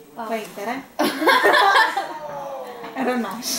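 Young women laugh loudly together.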